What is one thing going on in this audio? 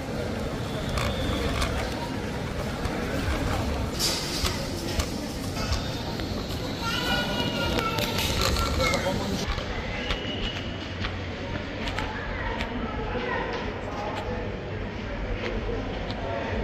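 Shoppers chatter in a large echoing mall.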